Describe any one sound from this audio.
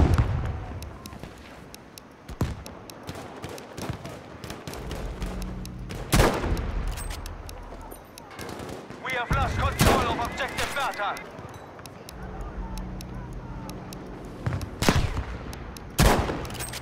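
A rifle fires loud, sharp shots close by, each ringing out briefly.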